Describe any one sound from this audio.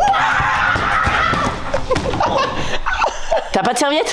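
A body thuds onto a wooden floor.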